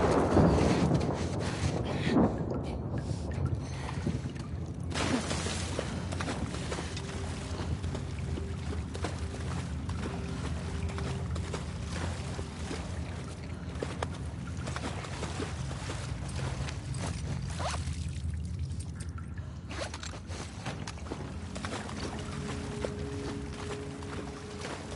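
Footsteps shuffle slowly on a hard floor.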